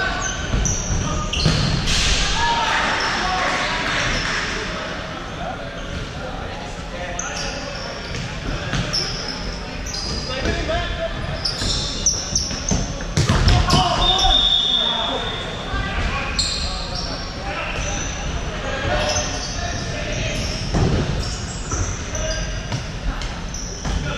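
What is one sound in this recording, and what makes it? Men shout to each other across the court.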